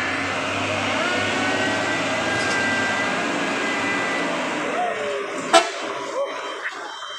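A heavy truck engine rumbles as the truck drives slowly past.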